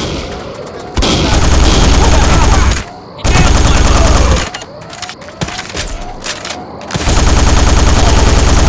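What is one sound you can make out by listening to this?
A rapid-fire gun shoots in loud, long bursts.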